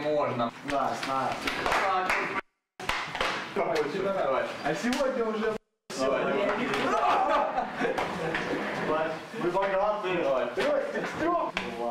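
Young men shout and cheer excitedly nearby.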